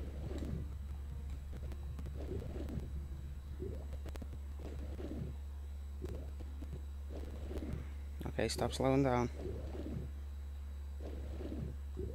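A low underwater hum drones steadily.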